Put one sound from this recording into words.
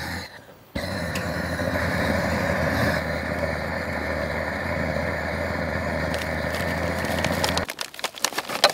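A gas torch roars steadily into a fire.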